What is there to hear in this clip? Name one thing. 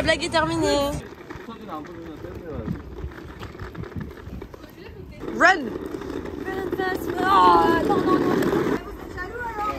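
A small wheeled cart rolls over asphalt.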